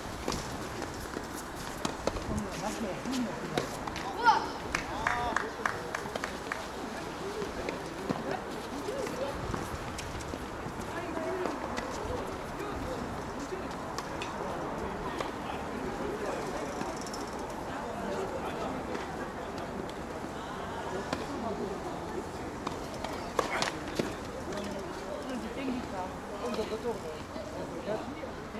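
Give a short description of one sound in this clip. Tennis balls are struck with rackets in sharp pops.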